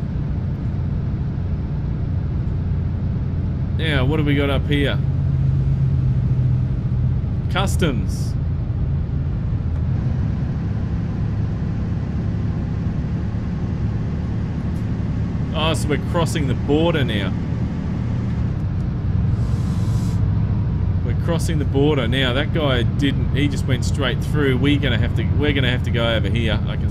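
A truck engine drones low and steadily.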